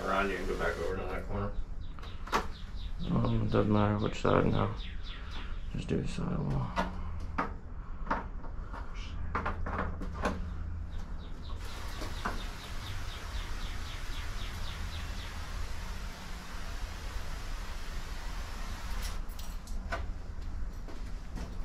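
A hand tool scrapes and knocks against a door threshold.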